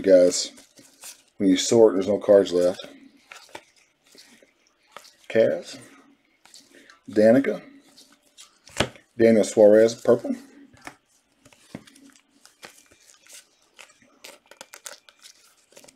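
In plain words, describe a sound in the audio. Gloved hands shuffle and flip through trading cards.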